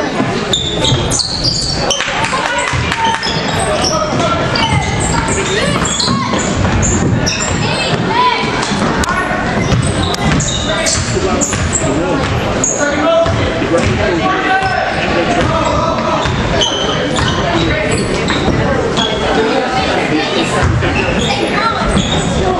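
A crowd of spectators chatters and shouts in a large echoing gym.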